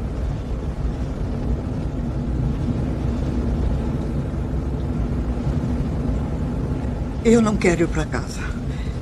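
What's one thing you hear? A car engine rumbles low and steadily.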